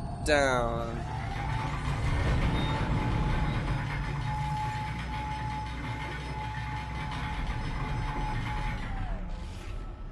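A futuristic weapon hums steadily while it is aimed.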